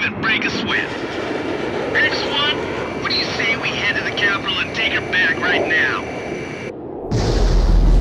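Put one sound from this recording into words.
Jet engines roar steadily close by.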